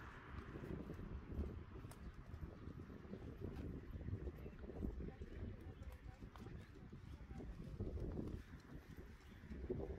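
A horse-drawn carriage rolls over grass.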